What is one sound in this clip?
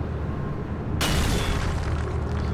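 Rocks crash and debris scatters.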